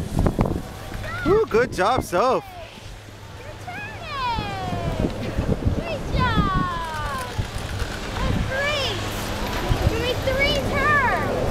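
A young child talks nearby in a high voice.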